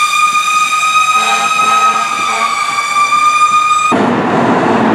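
A fire truck's horn blares steadily.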